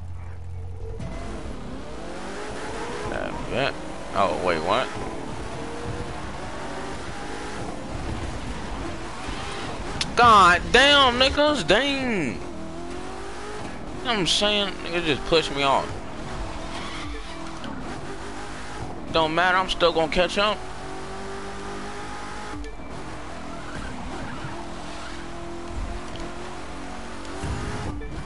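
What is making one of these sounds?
A sports car engine roars as the car speeds along.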